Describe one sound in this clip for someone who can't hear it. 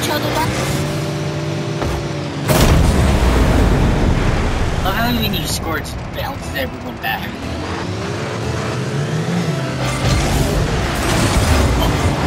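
Car engines hum steadily in a video game.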